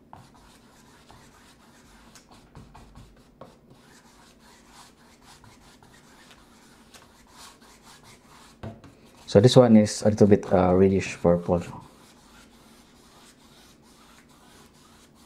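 A brush scrapes softly across canvas.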